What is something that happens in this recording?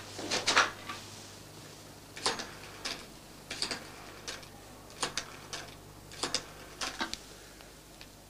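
A rotary telephone dial clicks and whirs.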